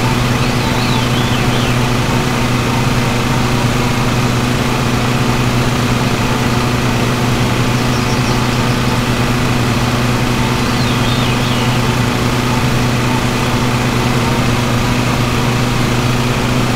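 A riding mower's engine drones steadily.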